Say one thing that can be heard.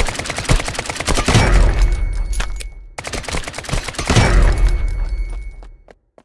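A rifle fires loud shots that boom and echo.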